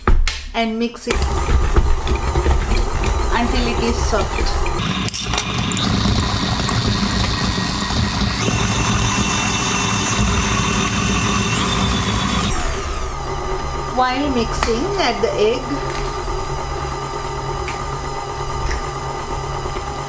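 A stand mixer motor whirs steadily as it beats food in a metal bowl.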